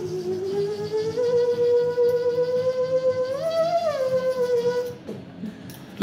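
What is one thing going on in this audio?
A small instrument held to the mouth plays a sustained, wavering tone that rises in pitch and then stops.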